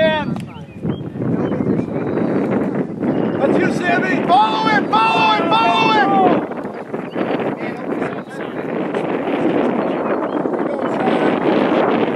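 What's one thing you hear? A crowd of spectators chatters and cheers.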